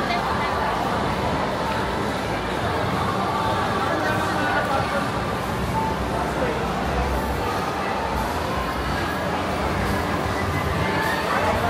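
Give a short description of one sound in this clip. A crowd murmurs and chatters throughout a large echoing indoor hall.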